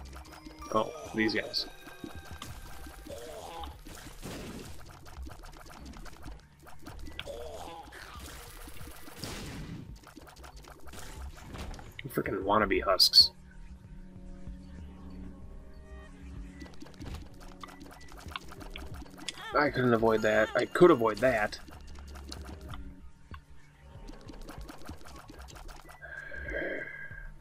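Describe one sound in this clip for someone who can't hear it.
Video game sound effects pop and splat as shots are fired.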